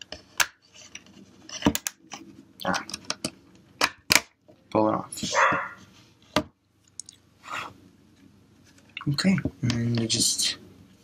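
A plastic phone case clicks and snaps as it is fitted on.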